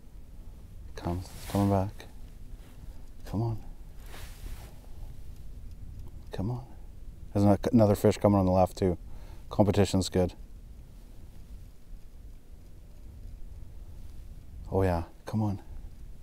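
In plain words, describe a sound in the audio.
A man speaks calmly and close to a microphone, outdoors.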